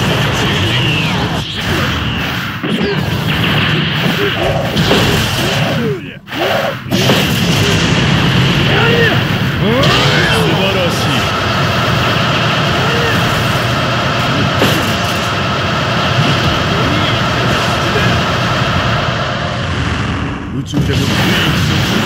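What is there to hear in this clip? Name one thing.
Energy blasts and hits crackle and bang in quick succession.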